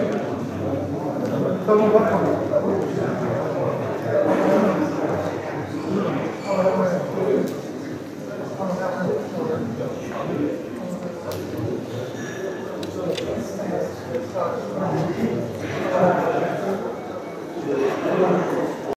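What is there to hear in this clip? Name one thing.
A crowd of men murmur and chat in an echoing hall.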